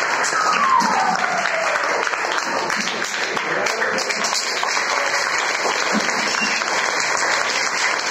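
Many young children chatter and call out in an echoing room.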